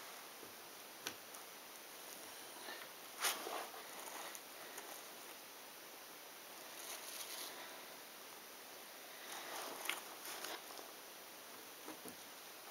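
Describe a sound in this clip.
Jigsaw puzzle pieces click and rustle softly on a table.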